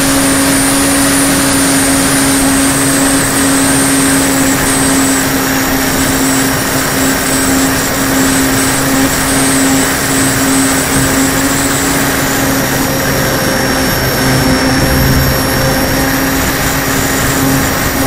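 A radio-controlled model plane's propeller drones with a steady whine.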